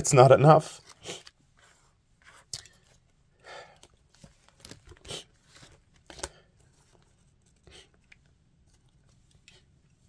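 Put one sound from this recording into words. Stiff paper pages rustle and flap as they are handled.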